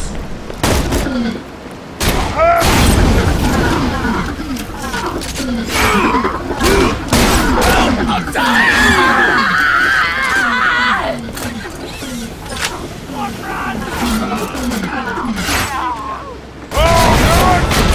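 A gun fires.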